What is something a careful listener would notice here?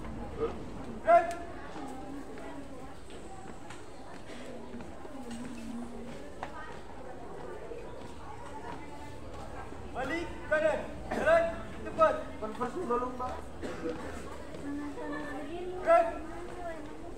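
Young people shout counts together outdoors.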